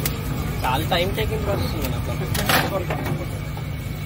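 An egg cracks against a metal bowl.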